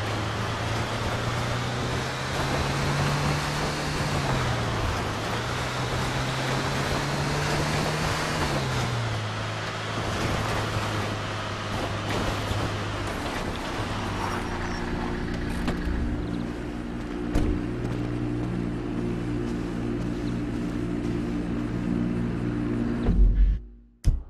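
A truck engine hums and revs as it drives.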